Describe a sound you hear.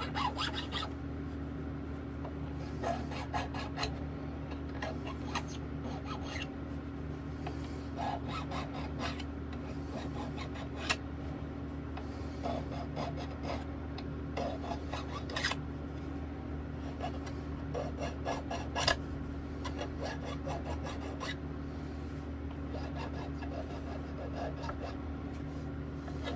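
A small metal tool scrapes and clicks against guitar frets.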